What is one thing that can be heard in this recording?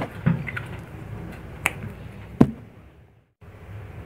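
A small plastic bottle is set down on a hard tabletop with a light knock.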